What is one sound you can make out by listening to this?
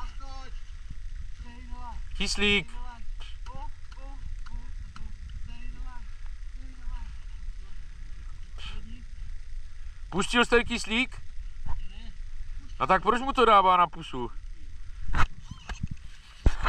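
Several men talk and call out to each other outdoors, some nearby and some farther off.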